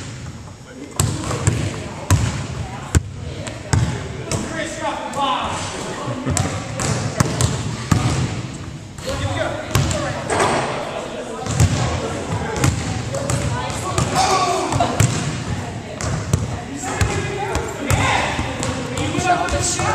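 A basketball bounces on a wooden floor in a large echoing gym.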